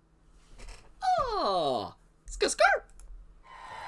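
A young man laughs loudly and excitedly close by.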